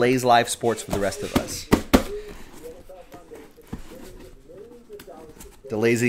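A cardboard box scrapes and rustles as it is lifted off.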